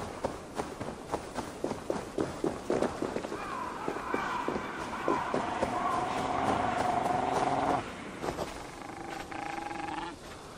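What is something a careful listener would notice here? Footsteps crunch on grass and dry ground.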